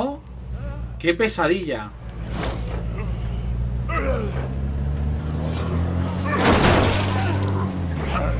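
A car thuds into a body with a heavy impact.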